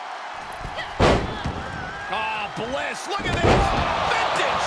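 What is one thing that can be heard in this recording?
A body slams heavily onto a wrestling mat with loud thuds.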